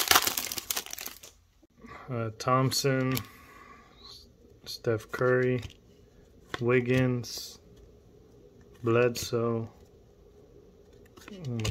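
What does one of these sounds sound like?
Trading cards rustle softly as they are flipped through.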